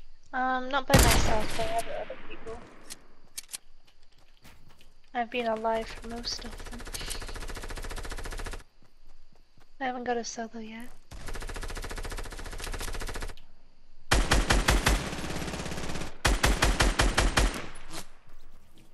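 Rifle shots ring out in sharp bursts.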